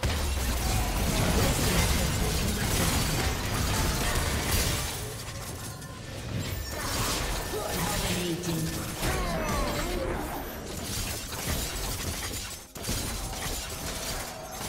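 Fantasy combat sound effects clash and burst rapidly.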